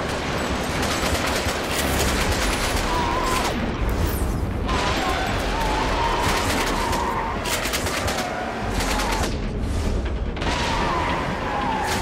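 Glass cracks and shatters under heavy blows.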